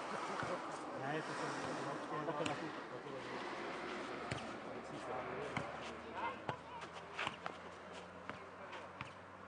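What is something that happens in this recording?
A ball thumps against feet and bounces on a clay court.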